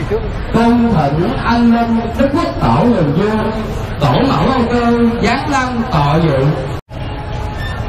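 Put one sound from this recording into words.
A man chants in a singing voice through a microphone and loudspeaker.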